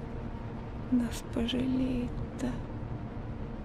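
An elderly woman speaks quietly close by.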